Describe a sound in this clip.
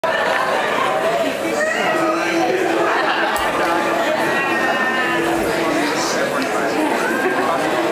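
A woman sings through a loudspeaker.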